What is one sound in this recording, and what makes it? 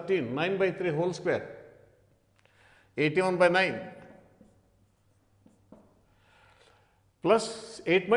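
An elderly man speaks calmly in bursts, close to a microphone.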